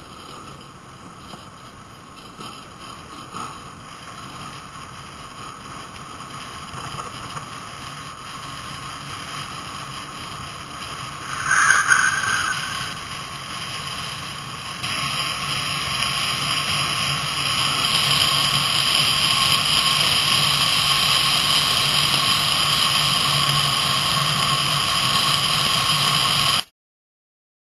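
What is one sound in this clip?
Wind rushes loudly past a fast-moving rider.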